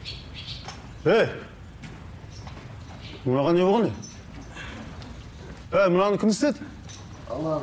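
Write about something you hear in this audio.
A man cries out sharply.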